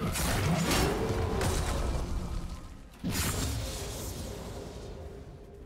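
Game weapons clash and strike repeatedly.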